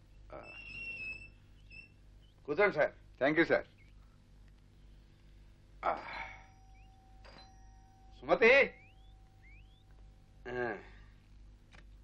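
A man speaks in short, loud bursts from a little way off.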